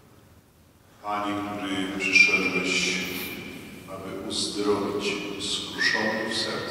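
A congregation sings together, echoing through a large hall.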